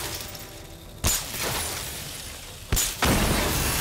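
Electric charges zap with sharp cracks.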